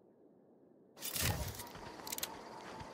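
A weapon is drawn with a sharp metallic clack.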